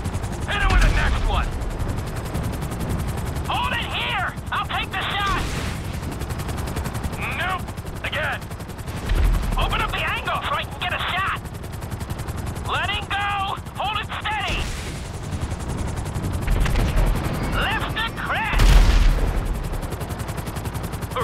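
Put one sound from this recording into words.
A helicopter's rotor beats steadily and drones close by.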